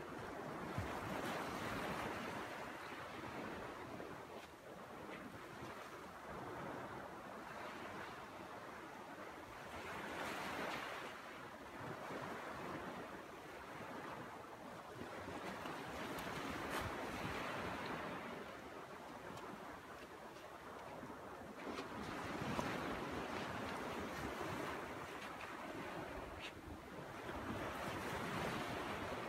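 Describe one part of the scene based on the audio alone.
Small waves wash softly onto the shore in repeating surges.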